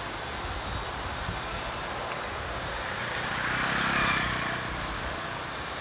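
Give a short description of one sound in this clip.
Cars drive past on a city street.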